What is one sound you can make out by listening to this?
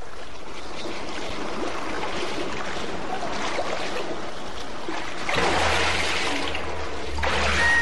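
Water bubbles and churns underwater.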